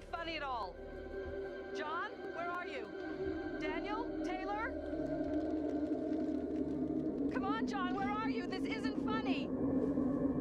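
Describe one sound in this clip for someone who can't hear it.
An elderly woman calls out loudly and anxiously.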